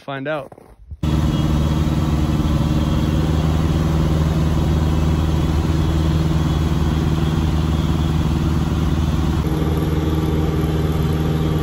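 A small plane's engine drones loudly and steadily in flight.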